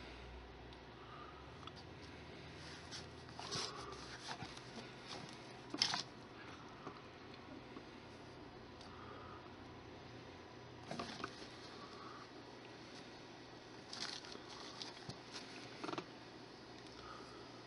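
A wooden tool scrapes and taps softly against clay.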